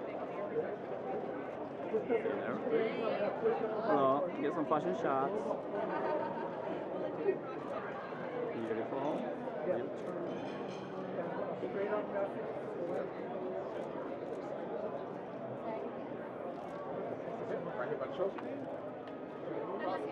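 A young woman talks nearby.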